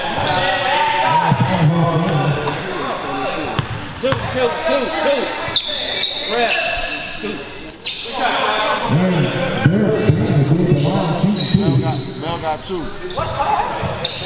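Young men call out and talk loudly in an echoing gym.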